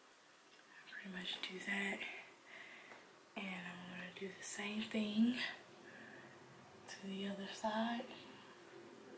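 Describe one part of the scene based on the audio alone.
A young woman talks calmly close to a microphone.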